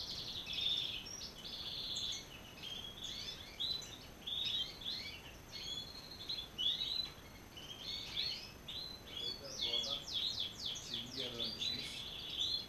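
Many caged birds chirp and trill busily all around.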